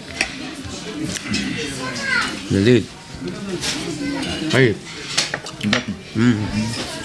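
Forks clink against plates.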